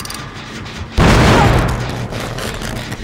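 A heavy blow lands with a loud whoosh.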